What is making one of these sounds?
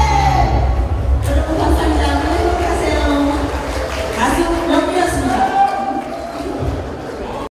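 A woman sings loudly into a microphone over amplified music.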